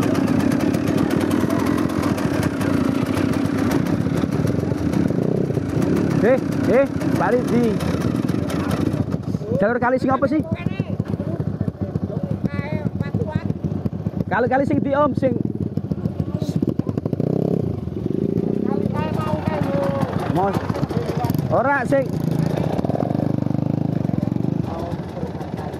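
Dirt bike engines rumble and idle close by.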